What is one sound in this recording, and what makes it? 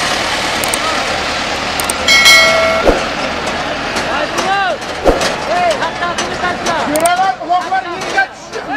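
A large crowd of men shouts and murmurs outdoors.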